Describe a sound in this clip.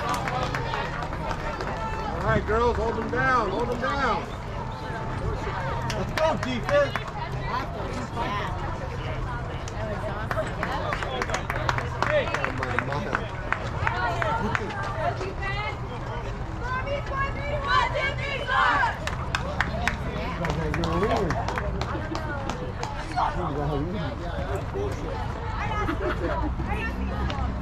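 Young women cheer and shout from a short distance outdoors.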